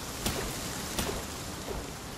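A pickaxe strikes stone with sharp clinks.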